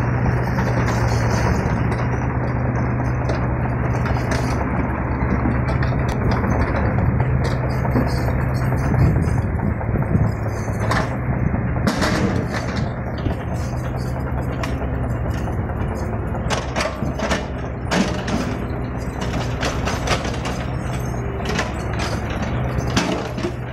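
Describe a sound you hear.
Hydraulics on a small excavator whine as the arm swings.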